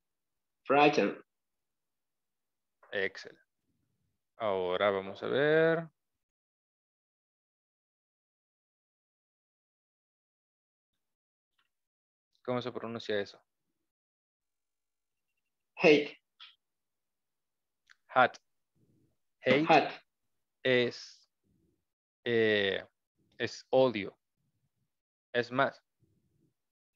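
An adult man speaks slowly in short phrases over an online call, with long pauses.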